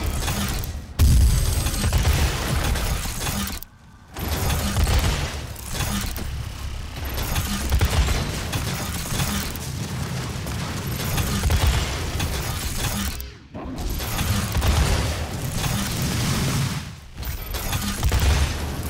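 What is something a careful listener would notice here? Explosions burst with deep rumbles.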